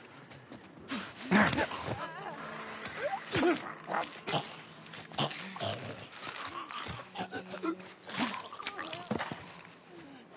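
A creature snarls and shrieks close by.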